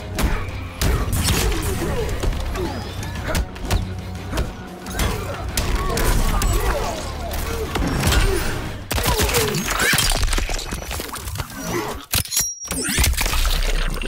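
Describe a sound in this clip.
Heavy punches and kicks land with loud thuds and cracks.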